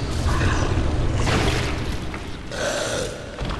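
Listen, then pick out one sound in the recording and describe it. A heavy blade swings through the air with a whoosh.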